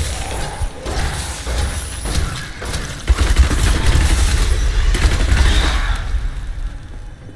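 Fiery magic blasts roar and crackle in a fierce battle.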